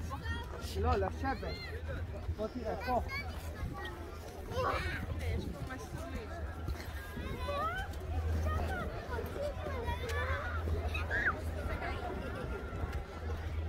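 A crowd of people chatter and call out nearby, outdoors.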